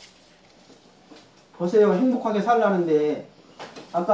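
Paper rustles in a man's hand.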